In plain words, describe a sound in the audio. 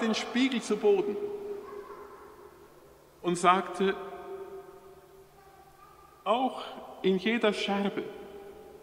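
A middle-aged man chants in a sung voice through a microphone, echoing in a large hall.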